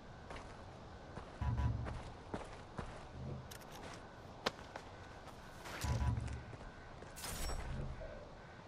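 Footsteps crunch over dry leaves and grass.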